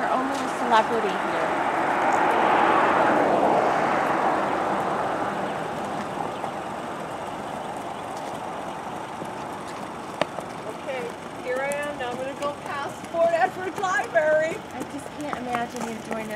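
Horse hooves clop slowly on pavement.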